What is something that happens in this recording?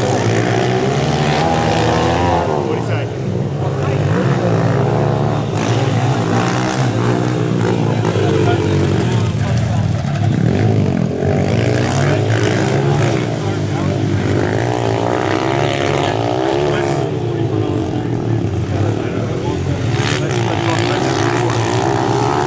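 Small dirt bike engines buzz and rev up and down nearby.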